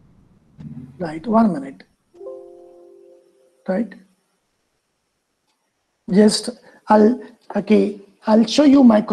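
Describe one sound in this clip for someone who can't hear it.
A middle-aged man speaks calmly through an online call microphone.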